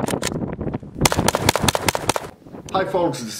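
A rifle fires a rapid burst of loud shots outdoors.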